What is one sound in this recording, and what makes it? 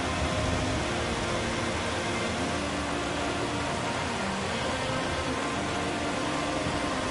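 A heavy truck engine rumbles steadily as the truck drives along.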